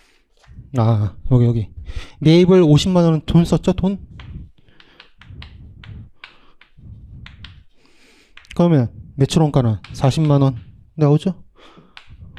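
A young man speaks with animation through a handheld microphone.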